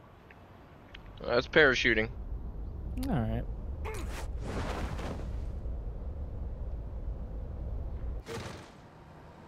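Wind rushes past during a freefall and parachute descent.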